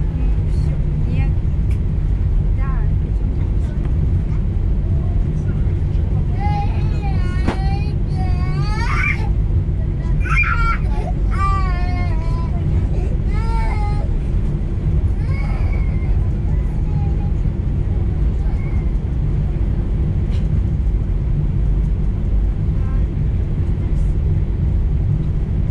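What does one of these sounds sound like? A jet engine hums steadily close by, heard from inside an airliner cabin.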